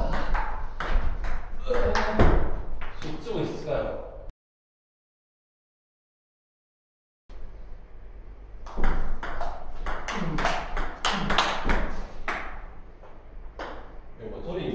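A ping pong ball clicks sharply back and forth on paddles and a table.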